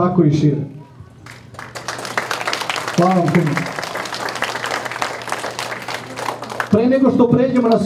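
A man speaks loudly into a microphone, heard over loudspeakers in an echoing hall.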